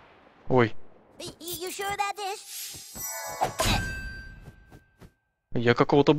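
Cartoon combat sounds whoosh and clash with chiming tones.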